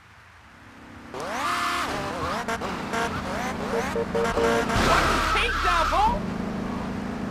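A motorbike engine revs and roars.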